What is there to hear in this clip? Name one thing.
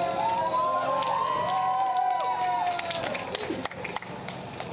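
People in a crowd clap.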